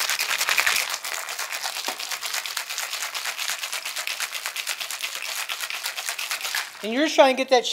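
Ice rattles fast in a cocktail shaker.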